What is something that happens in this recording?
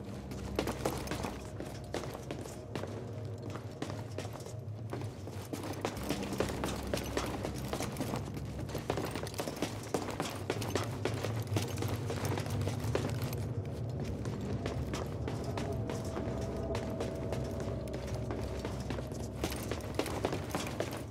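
Footsteps run quickly over metal and stone floors.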